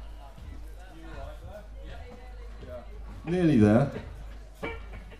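A band plays electric guitars loudly through loudspeakers.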